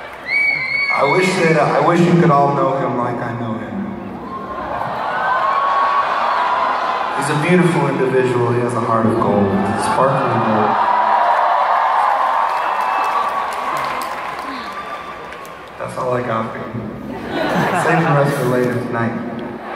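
A rock band plays loudly through big speakers.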